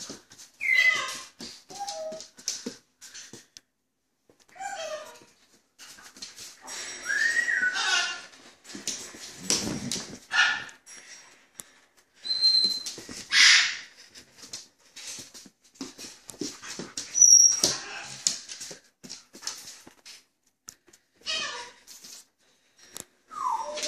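A dog scratches and tugs at a fabric cushion on a hard floor.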